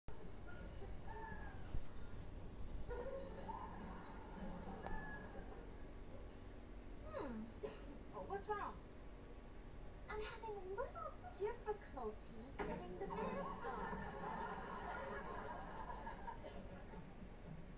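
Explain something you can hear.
A woman talks with animation, heard through a television speaker.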